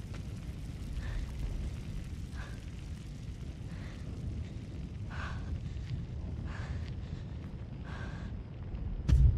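Boots thud on metal stairs in slow, even steps.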